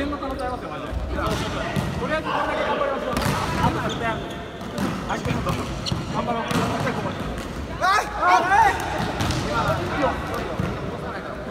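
Young women shout and call out in a large echoing hall.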